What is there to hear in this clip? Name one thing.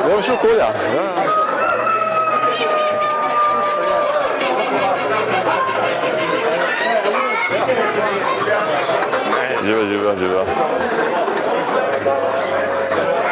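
Chickens cluck and squawk nearby.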